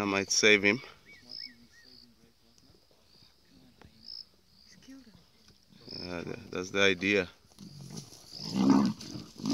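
Leopards growl and snarl loudly up close.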